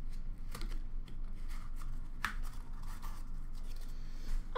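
Cards click and rustle as hands flick through them.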